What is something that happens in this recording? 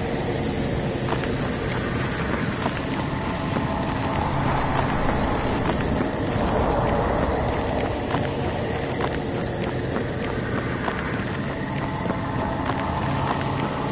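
Heavy armoured footsteps thud steadily on the ground.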